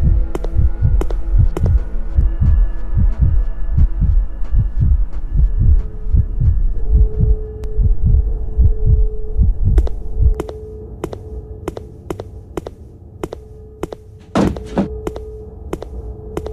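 Footsteps thud steadily on a hard floor.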